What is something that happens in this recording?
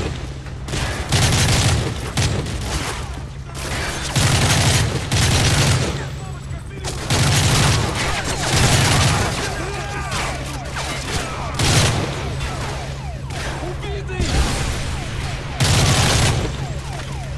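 A rifle fires loud bursts of shots in an echoing space.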